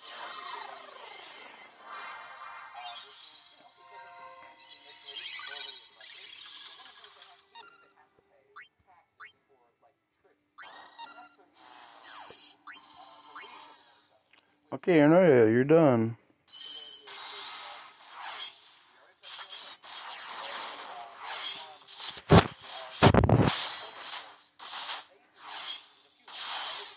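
Electronic battle effects whoosh, zap and crash in bursts.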